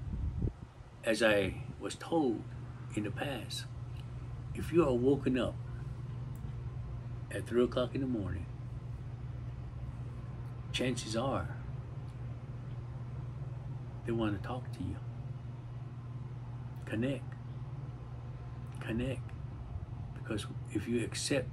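An elderly man speaks calmly and close by, with long pauses.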